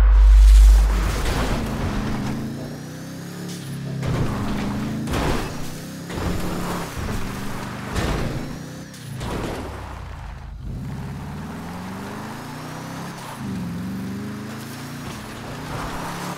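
Tyres crunch over dirt and brush.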